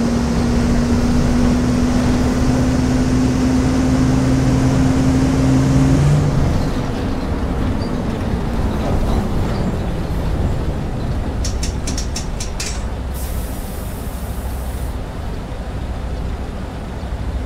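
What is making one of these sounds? A bus engine hums and rumbles steadily as the bus drives along.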